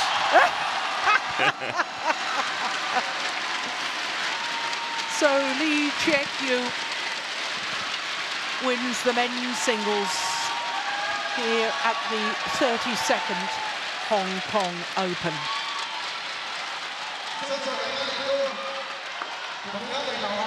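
A large crowd applauds in a big echoing arena.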